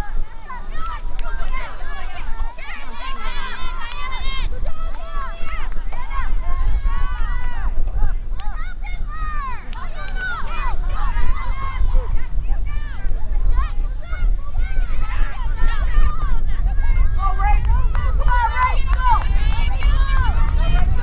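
Young women call out and shout to each other across an open field.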